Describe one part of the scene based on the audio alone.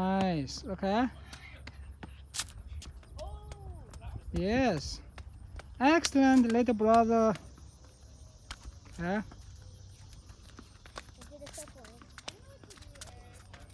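Sneakers patter on a hard court as children run.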